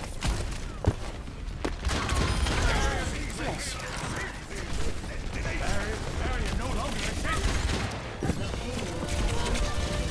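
Rapid gunshots crack in quick bursts.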